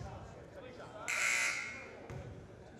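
A referee's whistle blows briefly and sharply.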